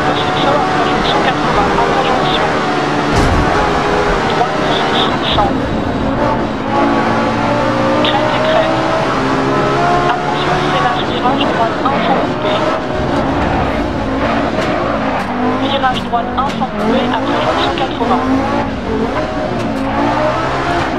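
A rally car engine roars and revs up and down through gear changes.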